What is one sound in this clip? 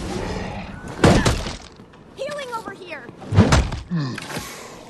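A heavy hammer strikes with loud, hard blows.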